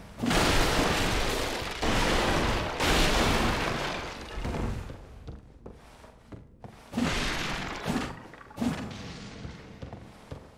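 Loud whooshing blasts burst again and again, each fading away.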